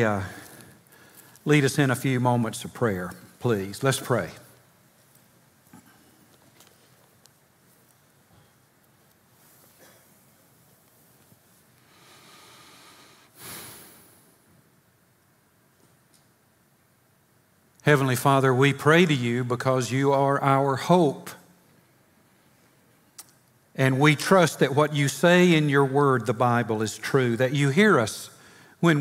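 An older man speaks calmly through a microphone, with long pauses.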